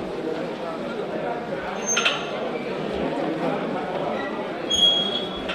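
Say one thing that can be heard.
A large crowd of men murmurs and chatters in an echoing hall.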